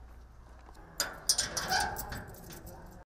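A metal padlock rattles and clicks against a door.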